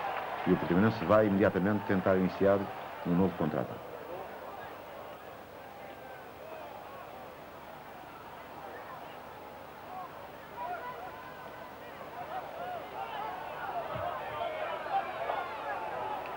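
A large crowd murmurs and calls out in an open stadium.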